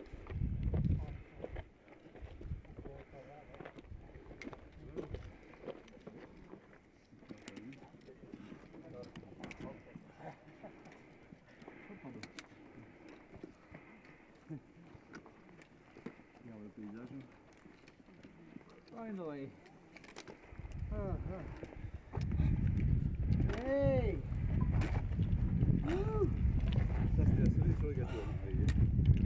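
Trekking poles click against rocks.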